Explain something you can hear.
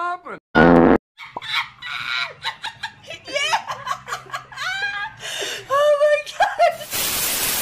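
A woman sobs and wails loudly.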